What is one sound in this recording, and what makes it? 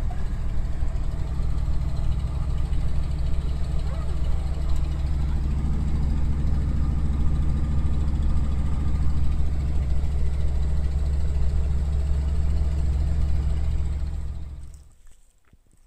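An old truck engine rumbles steadily while driving.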